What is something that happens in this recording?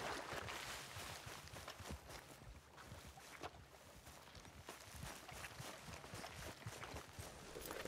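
Footsteps crunch softly through grass.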